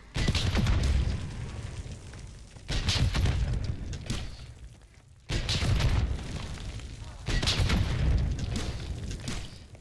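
Heavy explosions boom and rumble at intervals.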